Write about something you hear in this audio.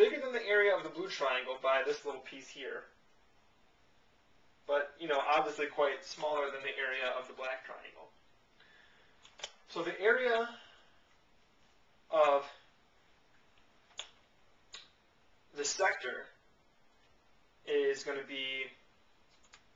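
A young man explains calmly, close to a microphone, with pauses.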